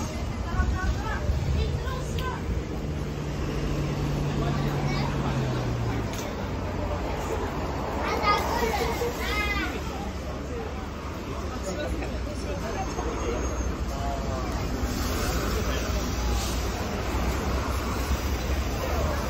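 A bus engine hums as it drives by.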